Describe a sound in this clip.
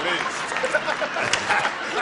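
A man laughs through a microphone.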